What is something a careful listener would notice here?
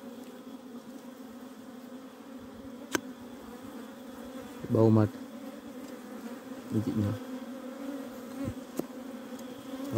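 A knife scrapes and cuts against soil and honeycomb.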